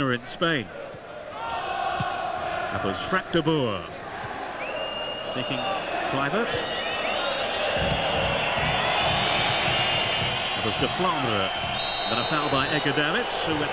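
A large stadium crowd roars and whistles steadily, growing louder partway through.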